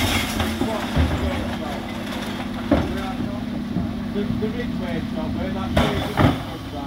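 A bin lift whirs as it raises and tips wheelie bins.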